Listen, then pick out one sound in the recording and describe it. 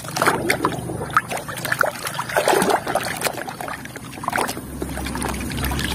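Water sloshes in a tub.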